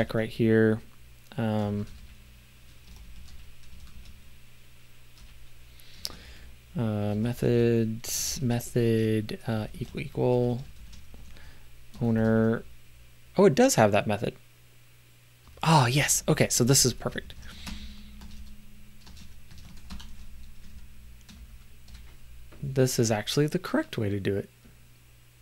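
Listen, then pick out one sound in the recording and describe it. A middle-aged man talks calmly into a close microphone, in short bursts.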